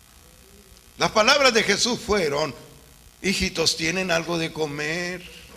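An elderly man speaks with animation into a microphone, heard through a loudspeaker.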